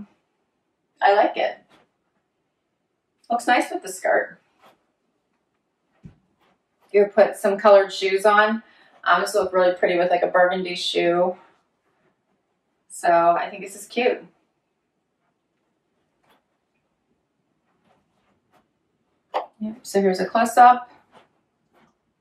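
A woman speaks calmly close by, in short bursts with pauses.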